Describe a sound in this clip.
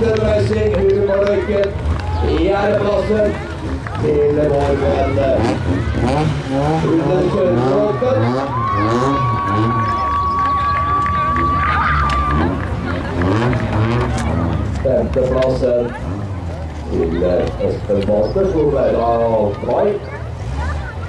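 Rally car engines rev loudly and roar nearby.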